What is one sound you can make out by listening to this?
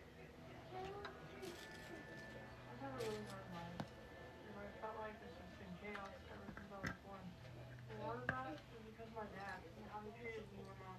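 Small plastic bricks click and rattle as they are handled and snapped together.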